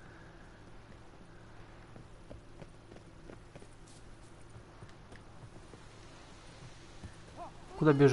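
Footsteps hurry over stone and wooden planks.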